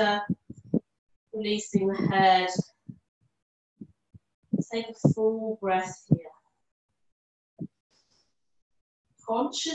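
A woman speaks calmly and clearly into a close microphone, pausing between phrases.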